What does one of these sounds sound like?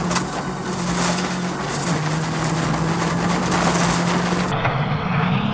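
A rally car engine roars loudly from inside the car.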